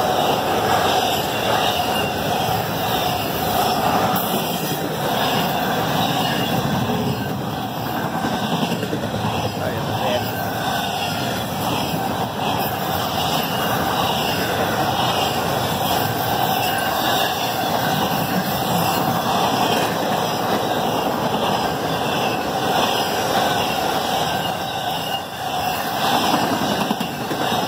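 A railway crossing bell rings steadily.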